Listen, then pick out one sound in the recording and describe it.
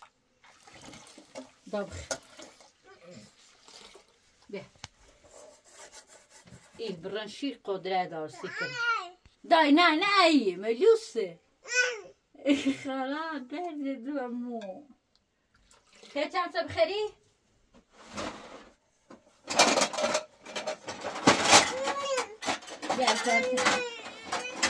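Metal pots and lids clink and clatter.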